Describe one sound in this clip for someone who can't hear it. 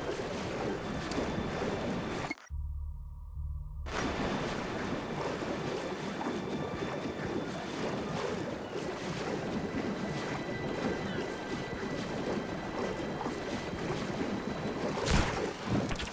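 Water sloshes and splashes as a swimmer strokes through the sea.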